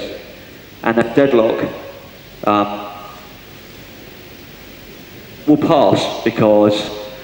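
A man speaks with animation into a microphone, in a large echoing space.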